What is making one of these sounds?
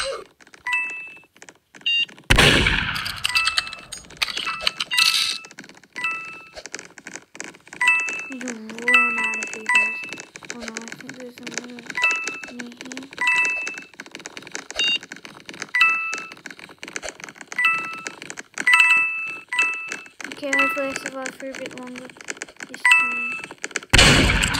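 Footsteps patter quickly as a game character runs.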